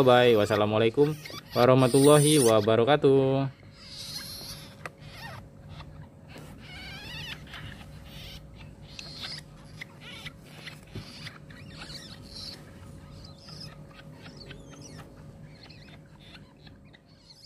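Newborn kittens mew loudly with high, shrill cries, then more softly.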